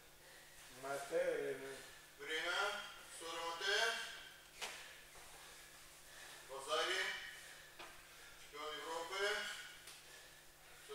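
A young man speaks in short bursts in an echoing hall.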